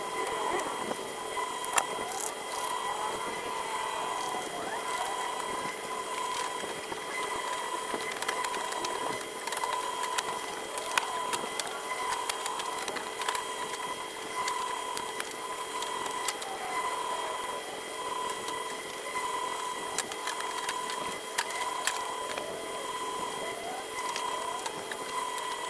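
Small metal parts click and clink against a car's rear light housing.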